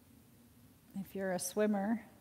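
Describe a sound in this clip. A woman speaks calmly and softly nearby.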